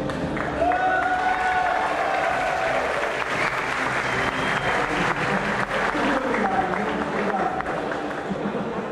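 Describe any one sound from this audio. A man speaks through a microphone over loudspeakers in a large echoing hall.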